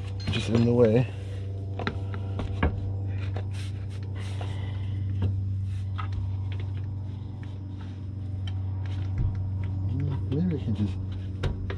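Metal parts clank and knock against each other.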